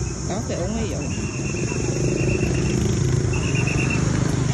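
A motor scooter engine hums nearby.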